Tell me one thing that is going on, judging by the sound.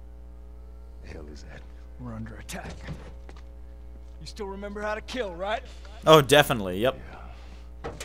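A man speaks urgently and tensely, up close.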